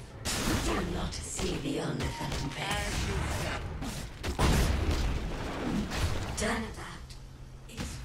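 Magic blasts crackle and boom in a busy fight.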